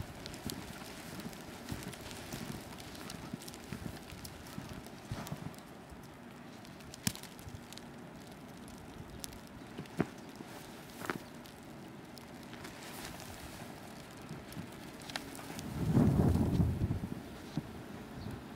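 A dog bounds through deep snow, its paws crunching and swishing.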